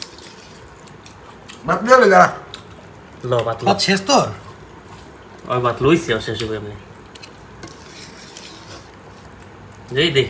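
A metal spoon scrapes and clinks against a pot.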